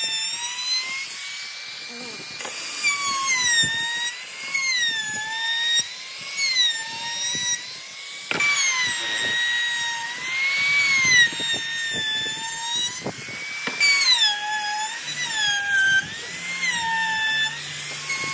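An electric router whines at high speed, its pitch dipping as it cuts into wood.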